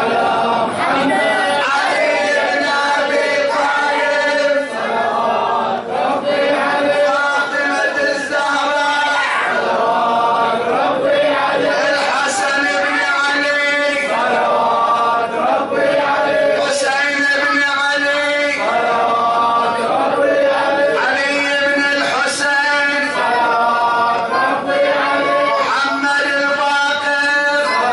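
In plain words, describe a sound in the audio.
An elderly man chants loudly through a microphone and loudspeaker in an echoing room.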